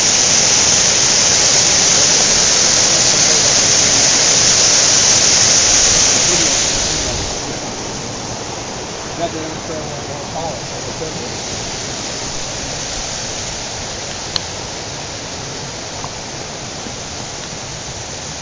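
A mountain stream rushes loudly over rocks close by, then fades into the distance.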